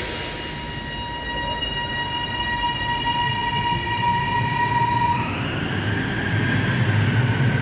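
Train wheels rumble along the track.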